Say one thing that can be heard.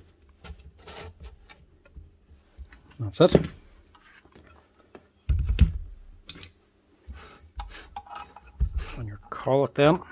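Metal parts of a power tool click and clink as hands handle it.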